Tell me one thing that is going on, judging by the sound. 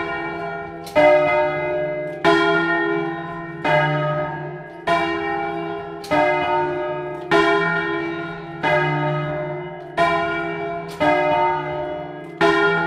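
Large church bells ring loudly close by, struck one after another in a steady rhythm, each ring slowly fading.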